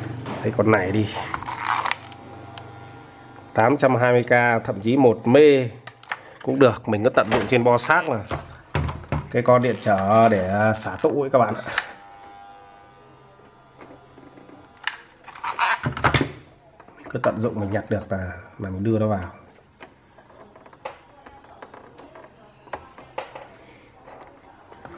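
Small plastic parts click and tap as hands handle an electronic board.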